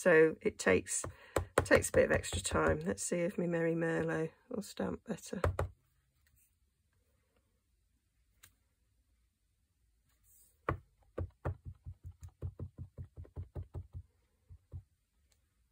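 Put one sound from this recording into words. A rubber stamp taps quickly and repeatedly on an ink pad.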